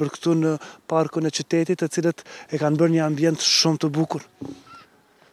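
A man speaks clearly into a microphone outdoors.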